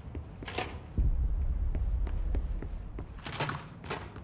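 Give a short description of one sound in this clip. Heavy doors slide open with a low rumble.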